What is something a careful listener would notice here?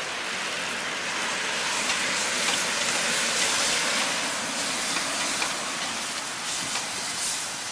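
Chopsticks scrape and stir in a metal pot.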